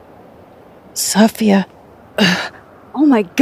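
A young woman speaks calmly and close.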